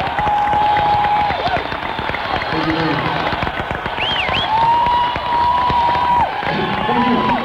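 A rock band plays live with electric guitar and drums.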